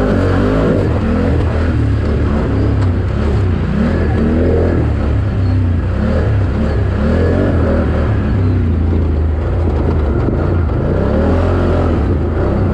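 Tyres churn through mud.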